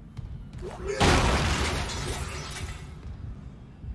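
An item is picked up with a sudden rushing burst of sound.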